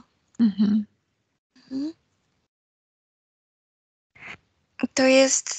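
A woman speaks in short bursts over an online call.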